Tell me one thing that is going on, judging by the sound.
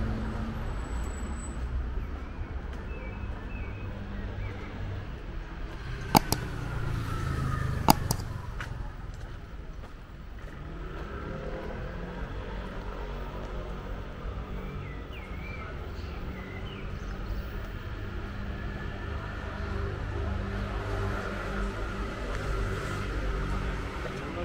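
City traffic hums steadily in the distance outdoors.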